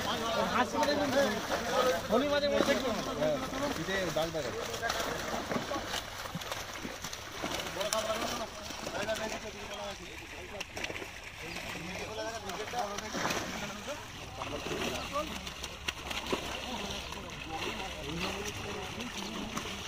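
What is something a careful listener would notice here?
Water splashes as fish thrash in a net.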